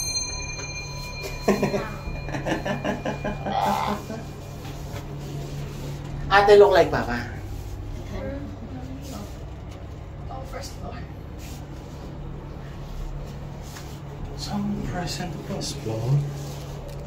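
An elevator hums steadily as it runs.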